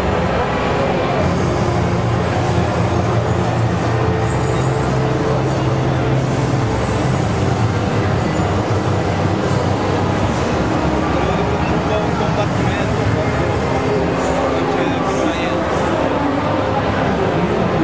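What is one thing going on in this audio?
Loud game music and effects play through a television speaker.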